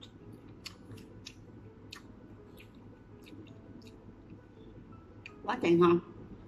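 A woman chews and smacks her lips close up.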